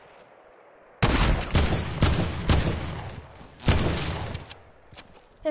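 A rifle fires loud shots.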